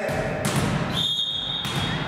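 A volleyball bounces on a wooden floor in an echoing hall.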